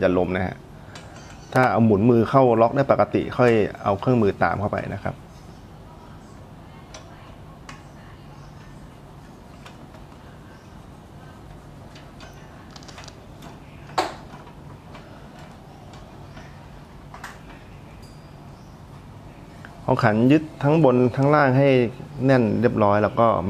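A socket wrench clicks as it tightens a bolt.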